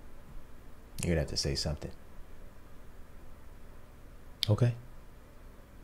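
A young man speaks briefly and calmly, close to a microphone.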